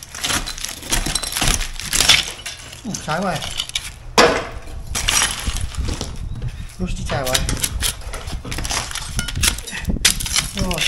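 A metal trowel scrapes and chips at crumbly mortar on bricks.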